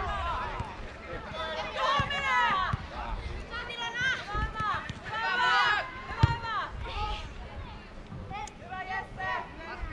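Young girls shout and call out across an open field.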